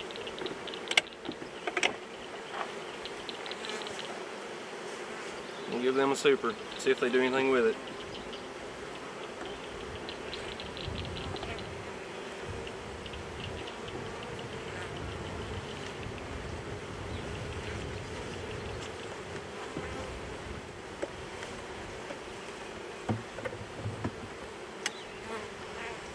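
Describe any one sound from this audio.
Wooden hive boxes knock and scrape together.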